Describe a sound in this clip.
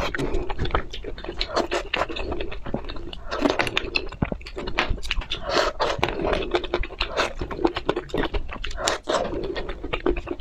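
A young woman chews and crunches food close to a microphone.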